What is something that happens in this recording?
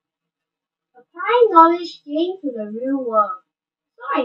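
A boy speaks calmly through a computer microphone.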